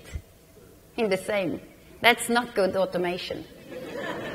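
A woman speaks calmly through a microphone in a large hall.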